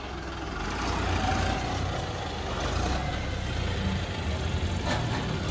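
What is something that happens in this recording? Large tyres crunch over sandy gravel.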